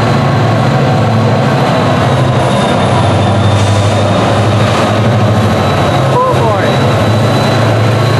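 Diesel locomotive engines rumble loudly and steadily nearby.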